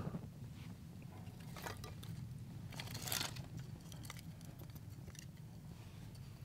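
Dry sticks of wood click and clatter against each other.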